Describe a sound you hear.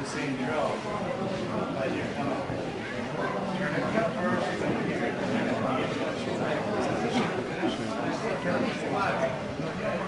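Several people chatter and talk over each other nearby.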